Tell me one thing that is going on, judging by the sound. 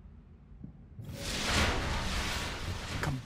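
A blade swishes through the air with a rushing burst.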